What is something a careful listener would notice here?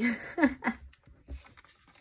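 A hand presses and smooths down a paper page.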